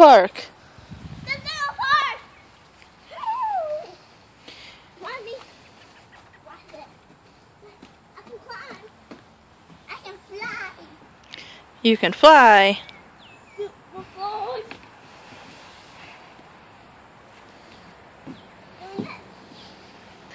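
A young child calls out excitedly nearby.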